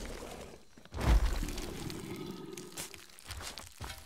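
An explosion booms loudly close by.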